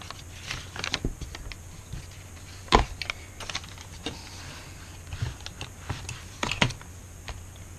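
Hands tap and press on paper.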